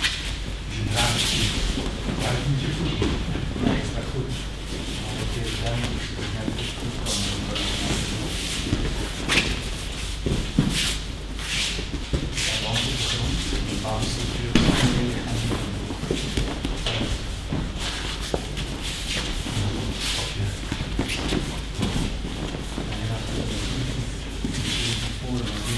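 Bodies thud onto a padded mat at intervals in a large echoing hall.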